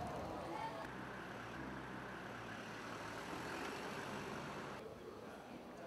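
Cars drive slowly along a street.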